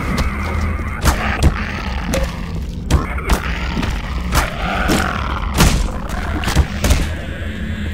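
A metal wrench strikes flesh with heavy thuds.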